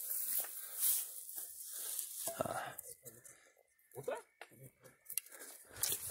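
Dry grass rustles and crunches underfoot.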